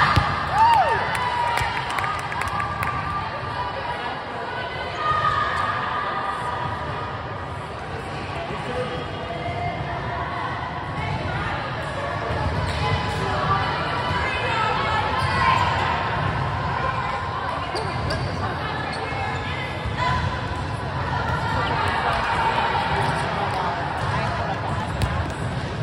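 Young girls call out and cheer across a large echoing gym.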